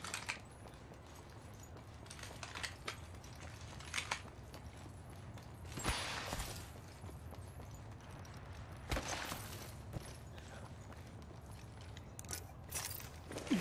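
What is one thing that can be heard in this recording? Footsteps clank on metal floors.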